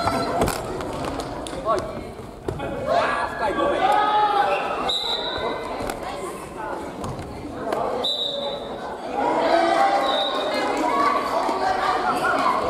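Many adult players talk and call out over each other, echoing in a large hall.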